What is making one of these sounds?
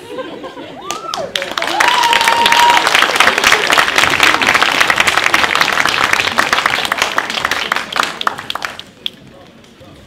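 An audience applauds loudly in a hall.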